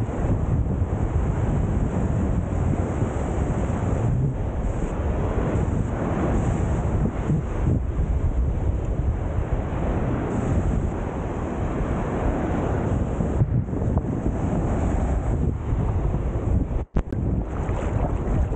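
Waves wash and break on the shore close by.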